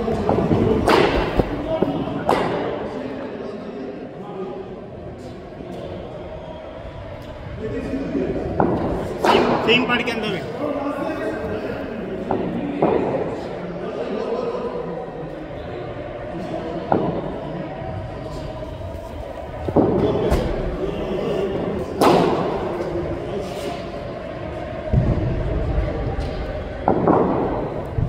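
A bat strikes a cricket ball with sharp knocks, over and over.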